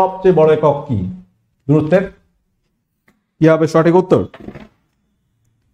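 A man speaks with animation into a microphone, close by.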